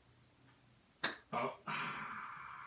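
An elderly man claps his hands twice.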